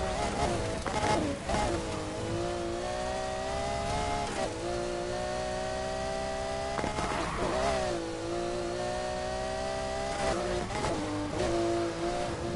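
Tyres screech as a car drifts through bends.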